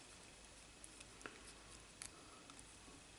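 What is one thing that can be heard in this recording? A small metal part clicks softly as fingers handle it.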